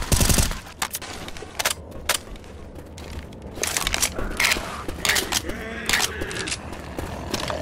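Rifle shots crack in short bursts.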